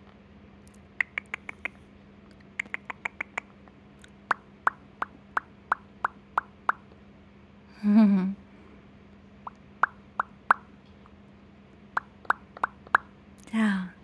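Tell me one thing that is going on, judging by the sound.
A parrot makes rapid soft clicking sounds close by.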